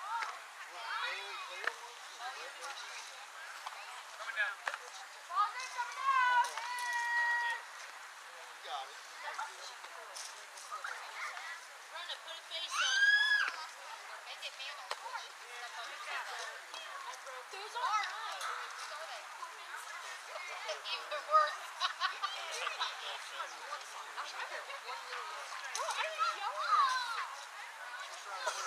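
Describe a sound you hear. Young girls shout and cheer across an open field outdoors.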